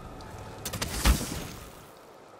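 A heavy thud of landing footsteps sounds.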